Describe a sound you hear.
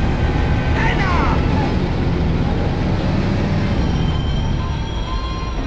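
An old car engine rumbles steadily as the car drives.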